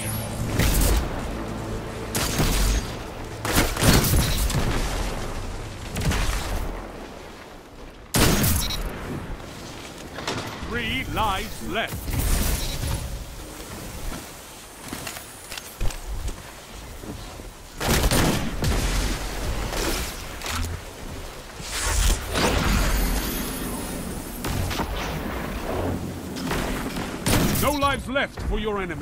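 Gunshots and blasts boom sharply again and again.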